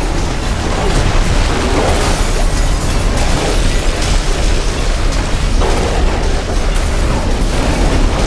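Dense explosions and laser blasts rumble and crackle without pause.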